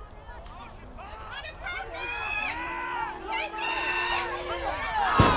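A crowd of spectators cheers and shouts loudly outdoors.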